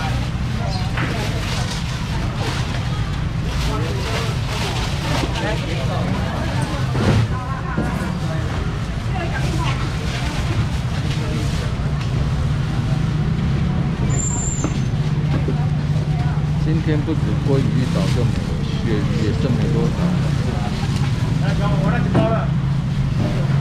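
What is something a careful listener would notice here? Market crowd chatter fills a busy, bustling space.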